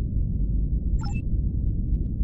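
A short electronic chime rings once.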